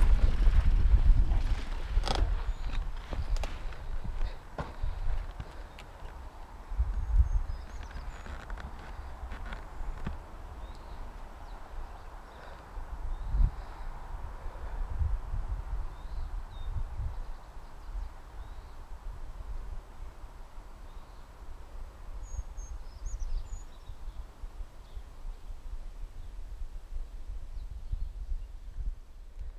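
Wind rushes and buffets loudly past a rider.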